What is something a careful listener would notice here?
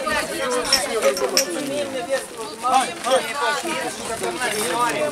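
A crowd of men and women talk and call out close by outdoors.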